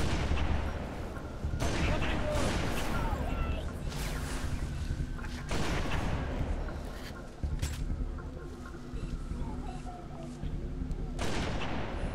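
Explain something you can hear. Game sound effects rumble and blast loudly.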